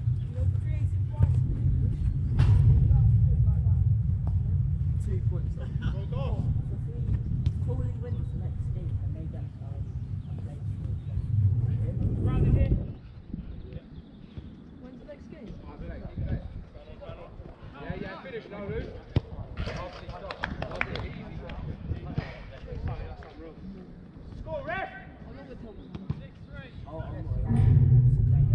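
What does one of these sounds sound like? Men shout to each other from a distance outdoors.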